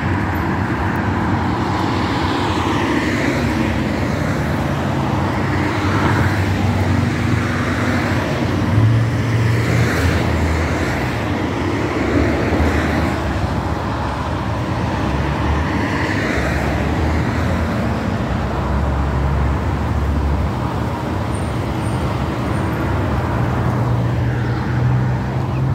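Cars pass by on a nearby road, rising and fading as they go.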